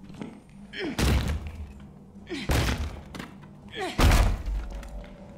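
Heavy kicks thud against a wooden door.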